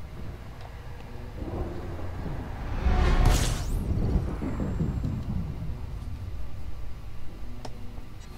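A spaceship engine rumbles low and steady.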